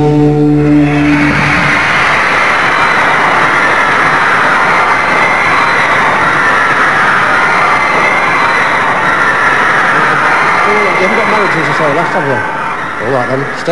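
A large crowd screams and cheers in a big hall.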